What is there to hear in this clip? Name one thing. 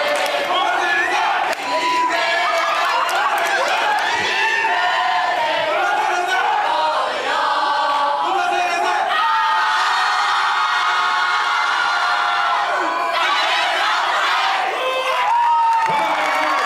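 A group of young performers sing together, heard from across a large hall.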